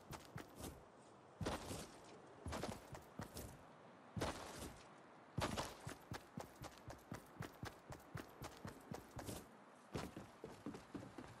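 Quick footsteps patter over grass.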